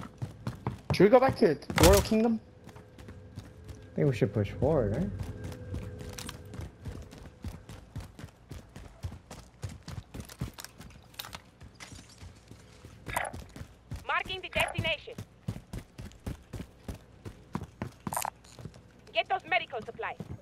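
Footsteps run quickly over hard stone.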